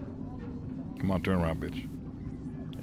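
A man speaks briefly and loudly, close to a microphone.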